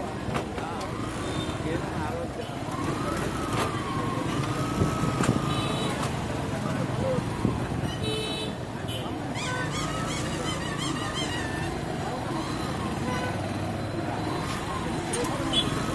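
A vehicle engine rumbles steadily close by.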